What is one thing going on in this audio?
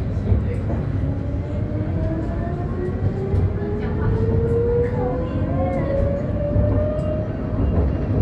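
A motor scooter buzzes past nearby.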